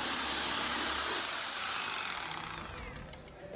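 An electric saw whines as it cuts through meat and bone, then winds down.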